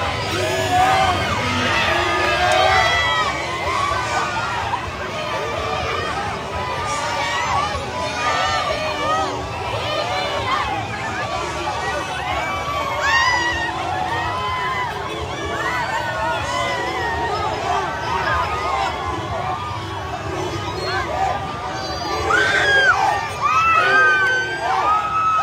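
A large crowd cheers and shouts excitedly outdoors.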